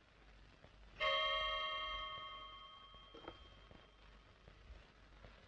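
A wall clock chimes with a ringing tone that slowly fades.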